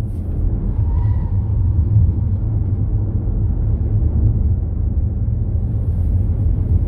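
Wind rumbles loudly against the car.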